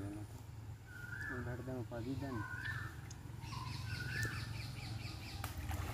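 Water in a shallow stream splashes over rocks.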